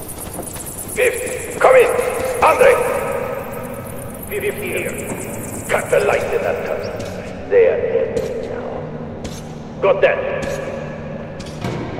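A man speaks urgently.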